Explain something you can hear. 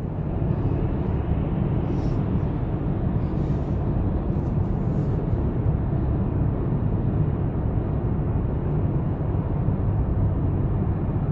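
A car drives steadily along a highway, its engine and tyres rumbling low inside the cabin.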